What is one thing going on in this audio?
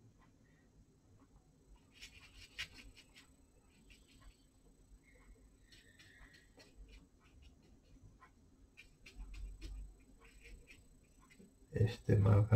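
A brush softly brushes and taps on paper.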